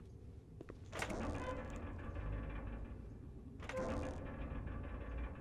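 A metal valve wheel squeaks as it turns.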